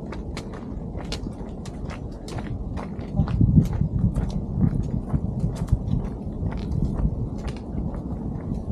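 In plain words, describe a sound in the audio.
Outdoors, wind rustles through the bushes.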